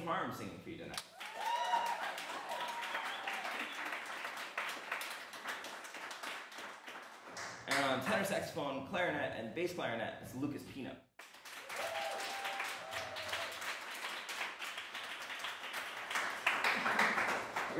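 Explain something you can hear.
Hands clap in applause.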